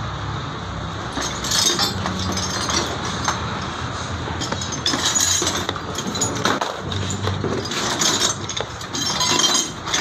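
Plastic parts click and rattle.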